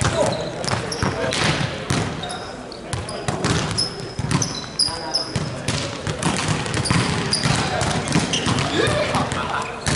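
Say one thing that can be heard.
Balls bounce on a hard floor.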